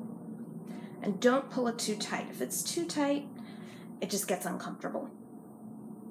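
A young woman talks calmly close to the microphone.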